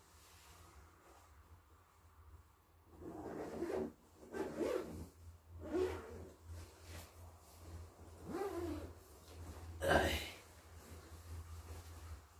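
A sleeping bag rustles as a man wriggles inside it.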